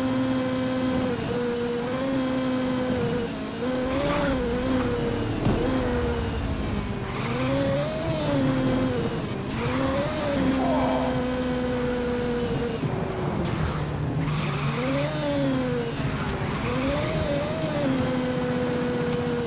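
A racing car engine whines loudly, revving up and down as it shifts gears.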